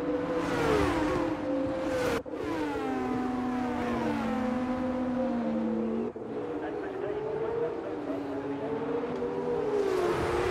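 Racing car engines whine at high revs, rising and falling in pitch as gears change.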